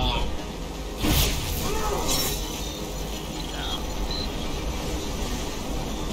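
Harsh electronic glitch noises crackle and burst.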